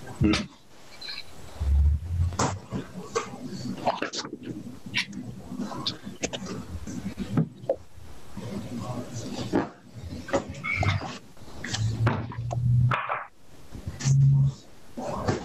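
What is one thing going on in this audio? A middle-aged woman speaks calmly, close by, heard through an online call.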